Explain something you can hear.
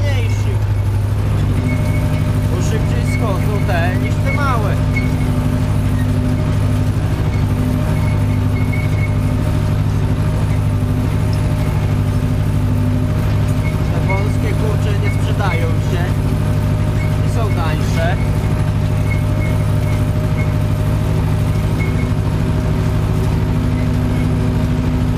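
A tractor engine hums steadily up close.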